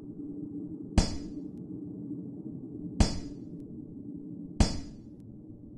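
Short sharp menu clicks sound three times.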